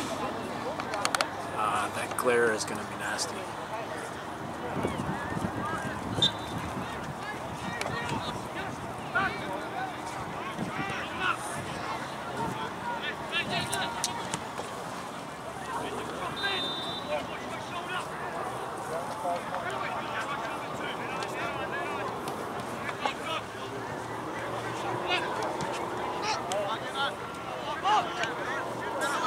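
Players and spectators shout and call out across an open field outdoors.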